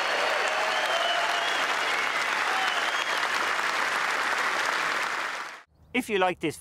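A crowd applauds and cheers outdoors.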